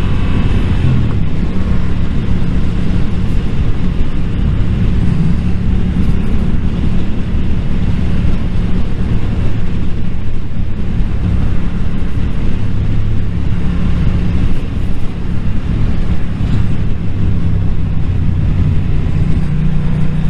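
A motorcycle engine hums steadily up close, rising and falling in pitch.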